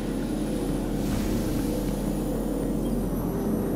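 A bright energy burst whooshes loudly.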